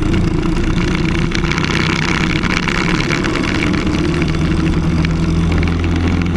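A kart engine buzzes loudly up close, revving higher as it speeds up.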